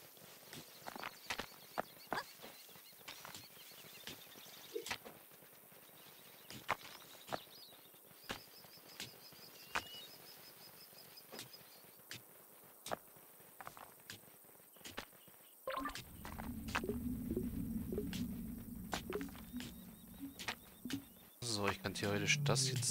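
Pickaxes clink against stone in quick, scattered strikes.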